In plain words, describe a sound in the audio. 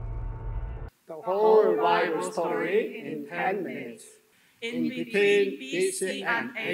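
A group of men and women sing together through a microphone.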